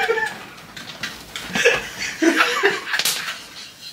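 Men laugh loudly together.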